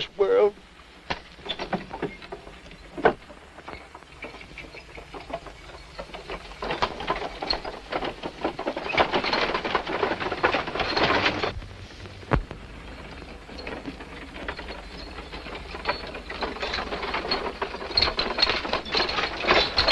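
Horses' hooves thud and clatter on a dirt path.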